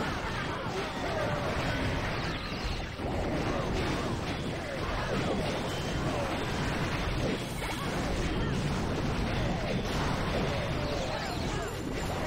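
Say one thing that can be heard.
Small explosions and weapon blasts crackle rapidly in a busy battle.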